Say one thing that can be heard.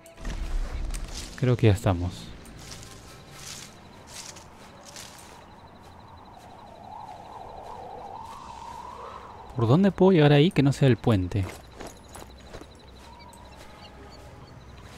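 Footsteps rustle through tall grass and bushes.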